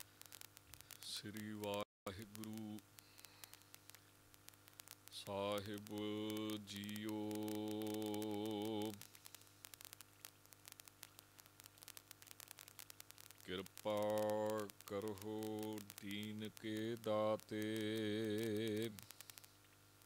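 A man chants in long, wavering sung phrases through a microphone, with pauses between them.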